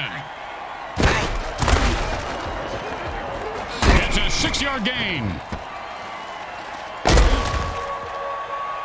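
Armoured players crash together with heavy thuds.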